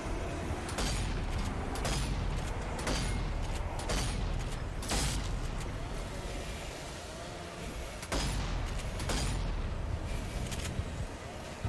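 Gunshots from a pistol crack in a video game.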